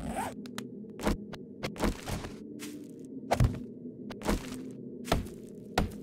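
A stone club thuds against wood again and again.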